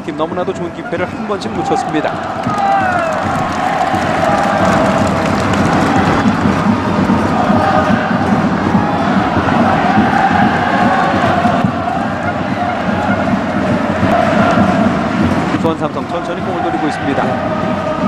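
A large stadium crowd cheers and chants steadily in the distance.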